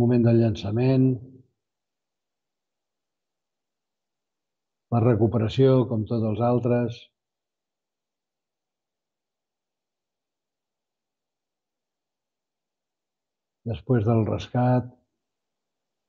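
An elderly man speaks calmly into a microphone, in short phrases with long pauses.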